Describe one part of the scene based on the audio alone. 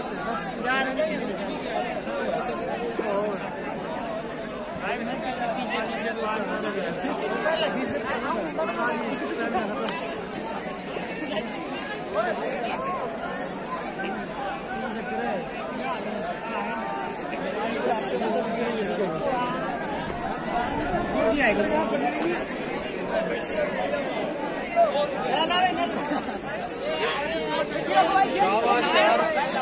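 A crowd of young men chatters outdoors.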